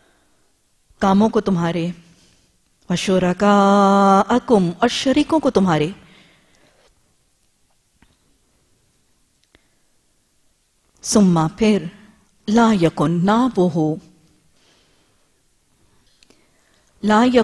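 A woman chants slowly into a microphone, with long melodic phrases and pauses between them.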